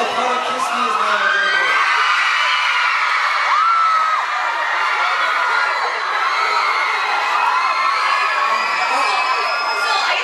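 A crowd of young women screams and cheers loudly.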